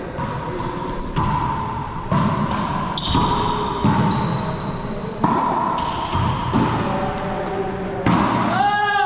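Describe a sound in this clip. A racquetball smacks hard against the walls, echoing loudly in a hard-walled court.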